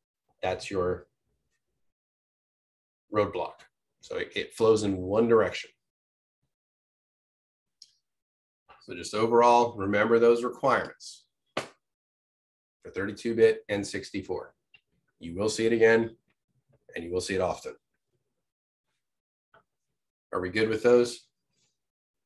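A man speaks calmly into a microphone, with pauses, as if presenting over an online call.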